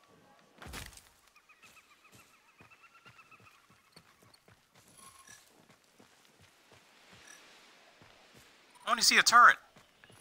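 Footsteps patter on dirt.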